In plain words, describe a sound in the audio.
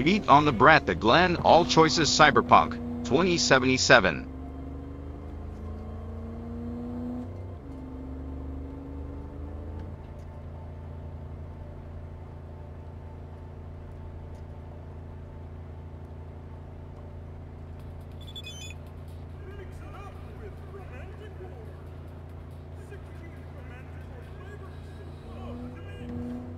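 A car engine hums and rises in pitch as the car speeds up.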